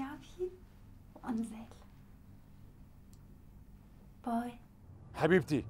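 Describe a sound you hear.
A woman speaks on a phone, close by.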